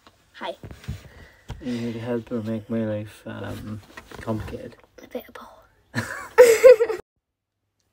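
A young girl laughs close by.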